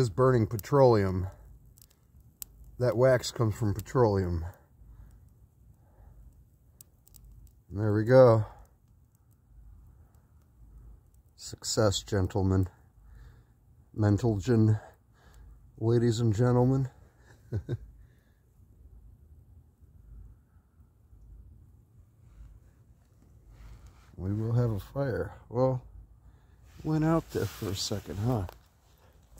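A small fire of dry twigs crackles and pops.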